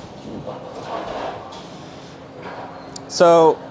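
A pinsetter machine whirs and clunks as it lowers bowling pins onto the lane.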